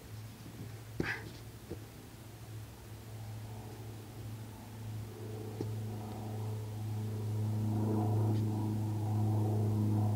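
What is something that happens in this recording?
A climber's shoes scrape and tap against rock.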